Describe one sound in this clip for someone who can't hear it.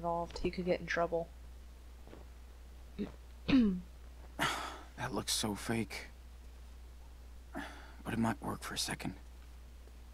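A young woman talks with animation close to a headset microphone.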